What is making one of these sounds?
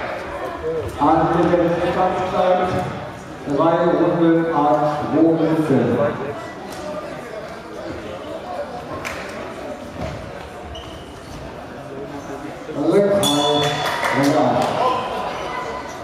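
A man calls out loudly in an echoing hall.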